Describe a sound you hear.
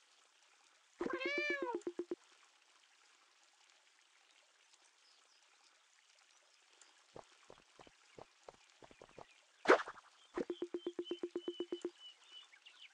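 Short electronic blips chatter in quick, even bursts.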